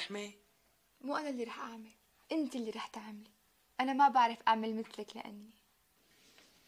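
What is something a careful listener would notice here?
A young woman answers calmly nearby.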